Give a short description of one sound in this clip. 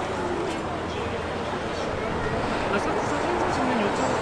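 Traffic hums along a busy street.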